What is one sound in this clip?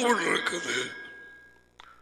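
A middle-aged man speaks through a headset microphone.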